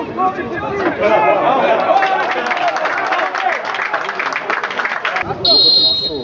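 Football players shout excitedly on an open pitch.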